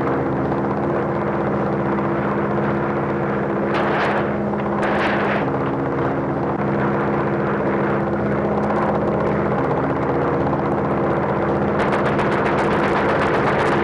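Propeller aircraft engines drone overhead.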